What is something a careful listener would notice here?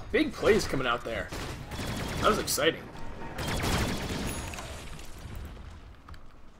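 Weapons clash and magic effects burst in a fight.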